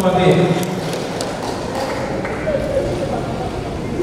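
Shoes tap on a hard floor in an echoing hall.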